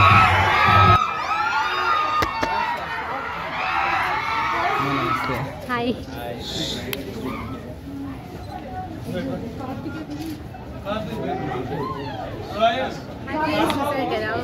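Men and women chat nearby in a lively indoor crowd.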